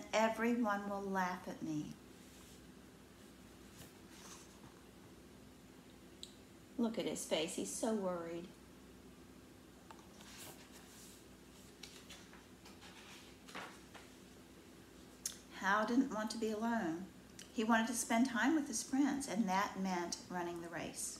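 An older woman reads a story aloud close by, with expression.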